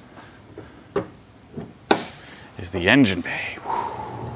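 A car bonnet clicks open and creaks as it is lifted.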